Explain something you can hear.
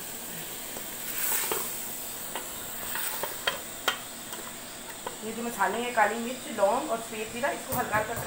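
A wooden spoon stirs and scrapes food in a metal pot.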